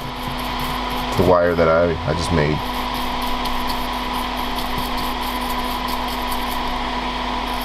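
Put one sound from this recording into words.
Metal tweezers scrape lightly against a circuit board.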